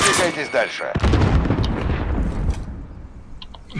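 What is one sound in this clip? A grenade explodes with a deep, rumbling boom.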